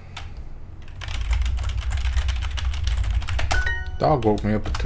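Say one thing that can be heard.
Keys clatter as someone types on a keyboard.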